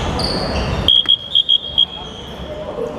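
A referee's whistle blows several short blasts.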